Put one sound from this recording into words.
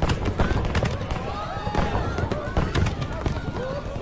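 Fireworks burst and crackle overhead.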